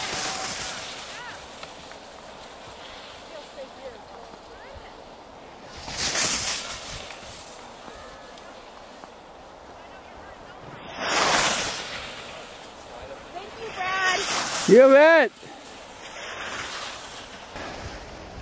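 Skis scrape and hiss across hard snow.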